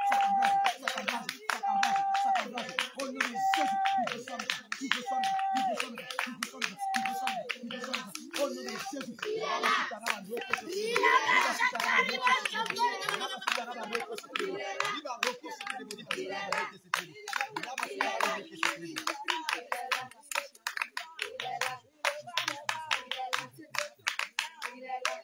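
A man prays aloud with fervour outdoors.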